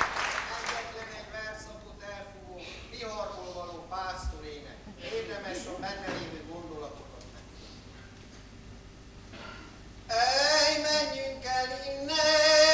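A man sings loudly in a large echoing hall.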